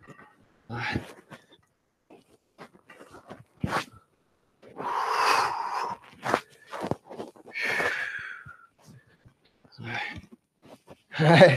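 A wooden staff swishes through the air in quick sweeps.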